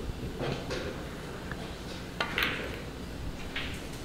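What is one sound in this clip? Snooker balls clack together.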